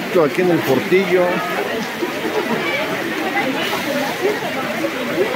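A crowd of people chatter loudly all around outdoors.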